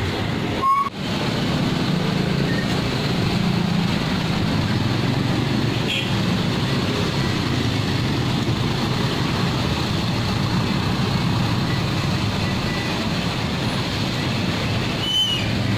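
A truck engine rumbles steadily nearby.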